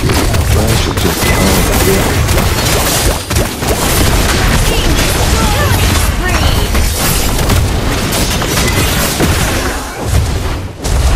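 Game sound effects clash and boom as characters fight.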